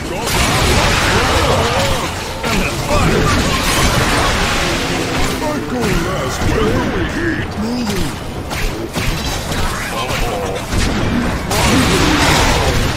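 Monsters grunt and growl in a noisy fight.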